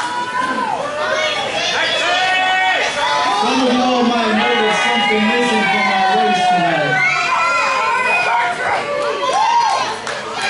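A crowd of children and adults shouts and cheers loudly in an echoing hall.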